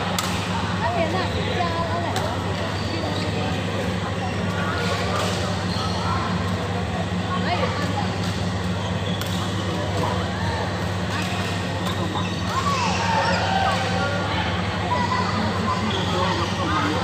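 Badminton rackets strike a shuttlecock in a large echoing hall.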